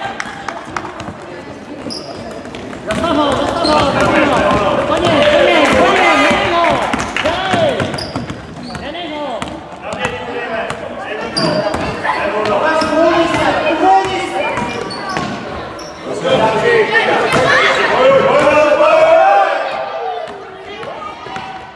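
Children shout and cheer loudly in a large echoing hall.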